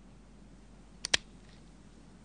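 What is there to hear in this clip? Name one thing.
A revolver's hammer clicks as it is cocked.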